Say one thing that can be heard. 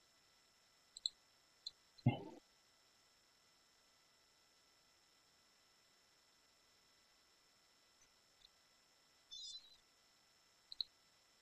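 A mouse clicks a few times.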